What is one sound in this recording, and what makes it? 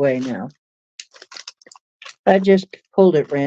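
Crinkly plastic rustles in a woman's hands.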